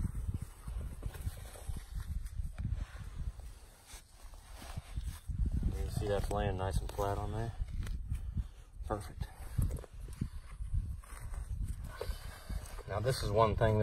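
Hands scrape and pat loose soil.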